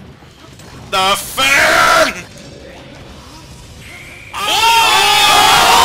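Video game fighters clash with sharp hit and swoosh sound effects.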